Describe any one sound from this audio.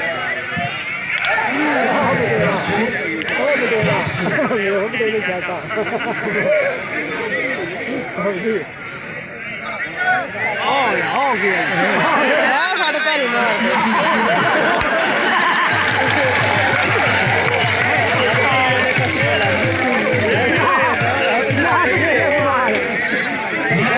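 A large crowd chatters and shouts outdoors, some way off.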